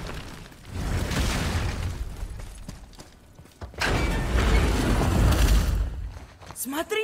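A heavy door grinds open.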